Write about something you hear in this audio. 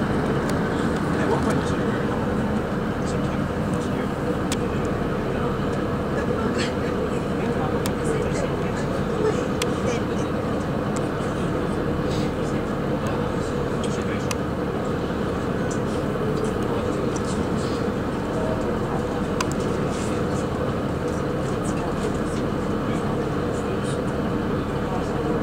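Wheels click and clack over rail joints.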